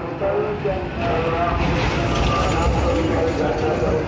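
A truck engine rumbles as the truck drives past.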